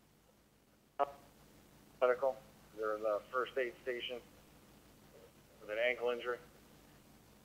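A voice speaks in short bursts through a radio scanner's small speaker.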